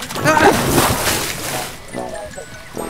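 Water splashes as a ring float lands in a pool.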